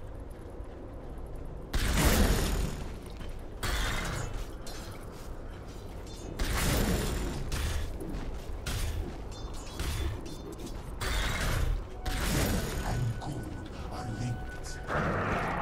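Fighting characters clash with sharp impact sounds.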